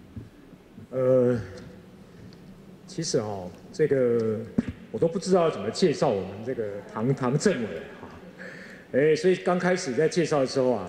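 An elderly man speaks into a microphone over a loudspeaker in a large echoing hall.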